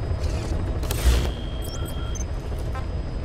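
A game menu chimes and beeps.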